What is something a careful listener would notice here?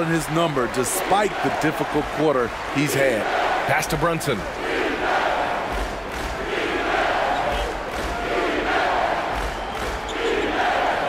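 A large crowd roars steadily in a big echoing arena.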